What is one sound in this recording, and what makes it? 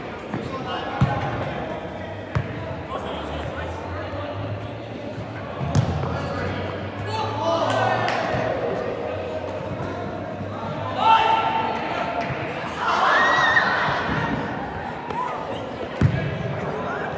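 A ball is kicked with sharp thuds in a large echoing hall.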